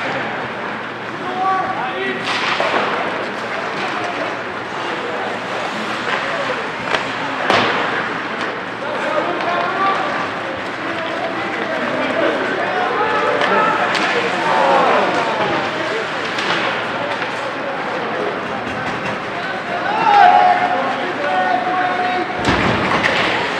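Ice hockey skates scrape and carve on ice in an echoing rink.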